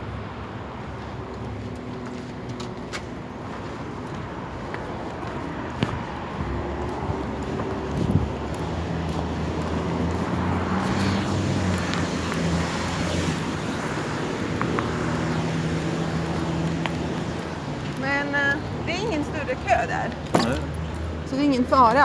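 Traffic rumbles steadily along a street outdoors.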